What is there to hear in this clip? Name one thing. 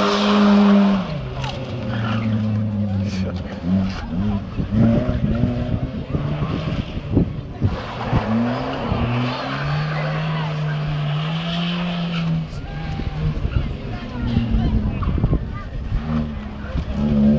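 A car engine revs and whines in the distance.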